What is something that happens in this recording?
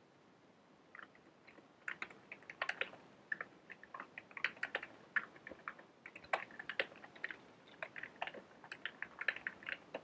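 Keys clatter quickly as someone types on a keyboard.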